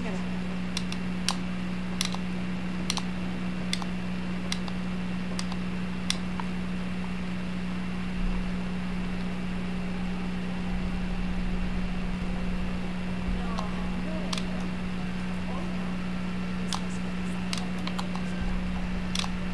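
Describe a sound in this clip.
A young woman talks quietly into a nearby microphone.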